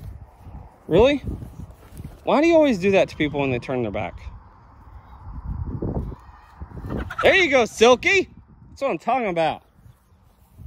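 A rooster crows loudly several times.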